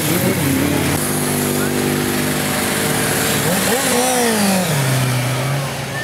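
A motorcycle engine roars and revs as it rides past.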